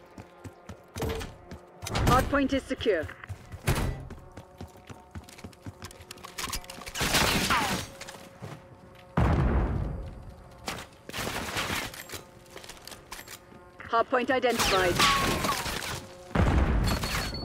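Gunfire bursts out loudly in short volleys.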